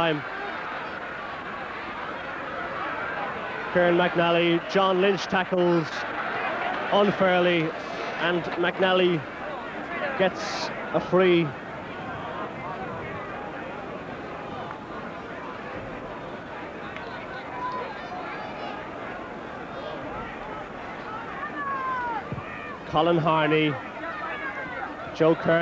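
A large crowd murmurs outdoors.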